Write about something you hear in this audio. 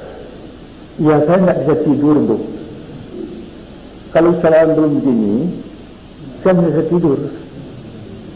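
An elderly man speaks slowly and firmly into a microphone, in short phrases with pauses.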